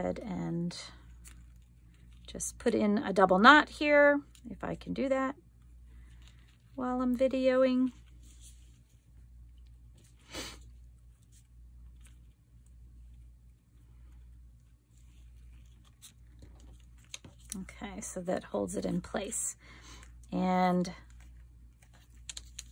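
Paper rustles and crinkles as it is folded.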